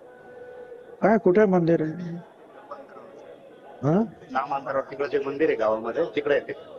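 An elderly man speaks forcefully into a microphone over a loudspeaker.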